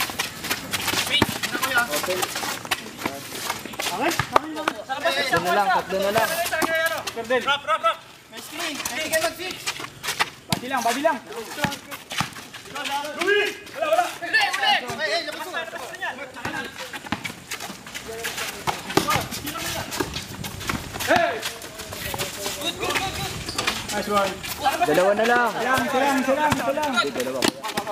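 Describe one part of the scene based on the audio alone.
A basketball is dribbled on a concrete court.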